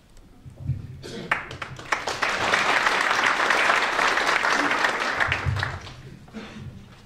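A small crowd applauds.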